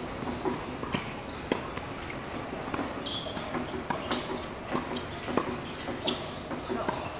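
Tennis rackets hit a ball back and forth on an outdoor hard court.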